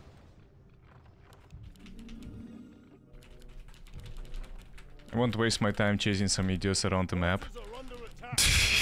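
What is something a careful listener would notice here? Game battle effects clash and clatter.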